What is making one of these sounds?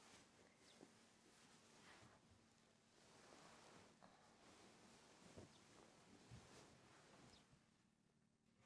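Thick bedding rustles as someone shifts under the covers and climbs out of bed.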